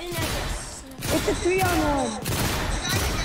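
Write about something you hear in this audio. A shotgun fires in a video game.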